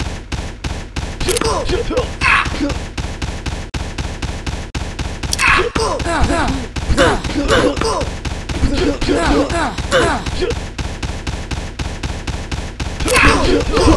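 Rapid gunfire rattles in a steady stream.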